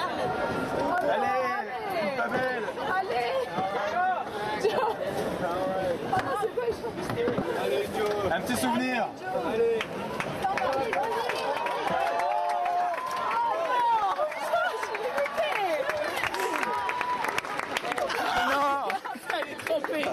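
A crowd of young people shout and scream excitedly close by.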